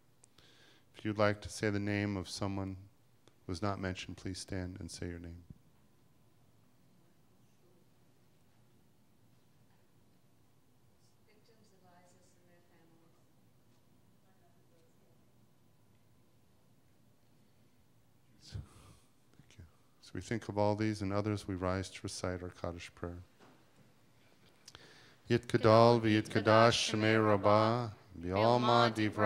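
A man sings a prayer through a microphone in a large echoing hall.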